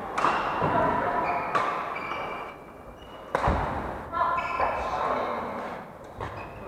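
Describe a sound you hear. Sports shoes squeak on a wooden floor.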